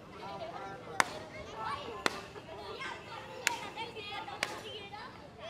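Balloons pop sharply.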